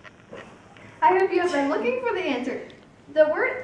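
A teenage boy speaks brightly and with animation, close by.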